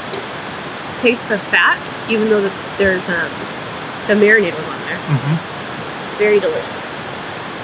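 A man and a woman talk casually nearby, outdoors.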